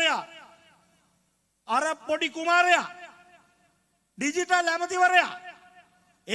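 A man speaks forcefully into a microphone over loudspeakers, his voice echoing outdoors.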